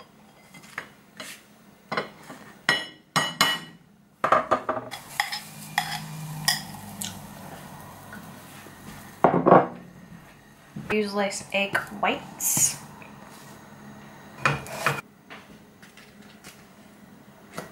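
A metal spatula clicks against a plate.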